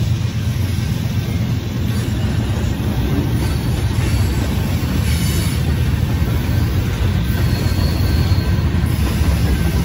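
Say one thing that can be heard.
A freight train rumbles past close by, its wheels clattering over the rails.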